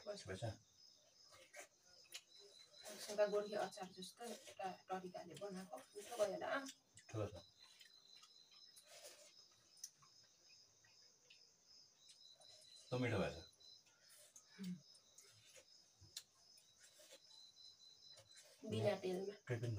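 A young man and a young woman chat quietly nearby.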